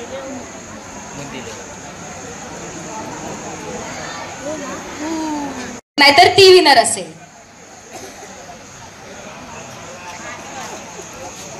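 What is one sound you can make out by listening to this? A crowd of women chatters nearby.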